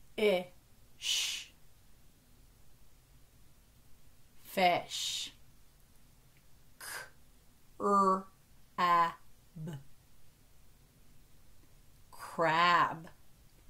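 A young woman speaks with animation into a close microphone, in short bursts.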